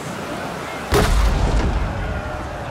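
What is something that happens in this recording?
Two wooden ship hulls bump together with a heavy thud.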